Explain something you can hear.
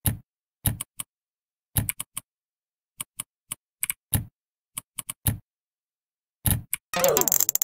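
Short tapping clicks sound in a quick, uneven rhythm as letters are typed.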